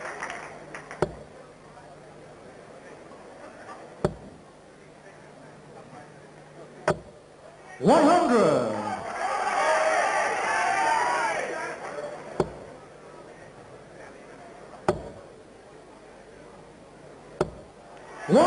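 Darts thud into a dartboard one at a time.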